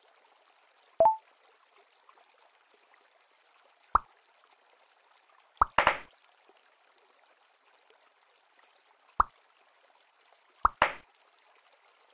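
Short popping effects sound as balls merge.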